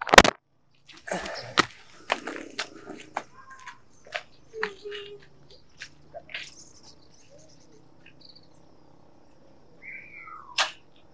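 A motorcycle is pushed along a dirt road, its wheels crunching.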